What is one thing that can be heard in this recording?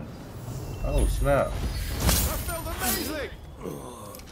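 A sword slashes with sharp metallic strikes.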